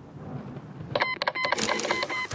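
A short chime sounds as a message pops up.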